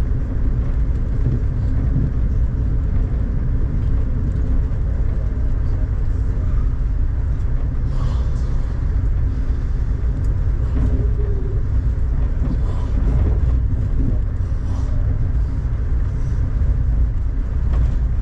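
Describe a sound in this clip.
Rain patters against a window.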